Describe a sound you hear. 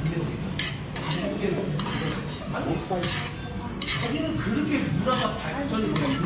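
Metal chopsticks click against a plate.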